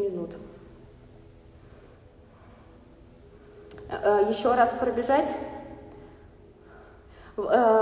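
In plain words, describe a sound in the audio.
A young woman speaks close by, in a slow and flat voice.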